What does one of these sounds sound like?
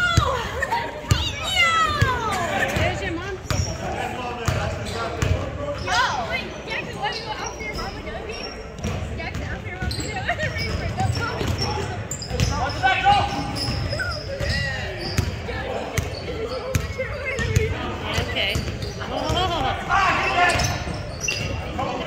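A basketball bounces on a hard floor, echoing.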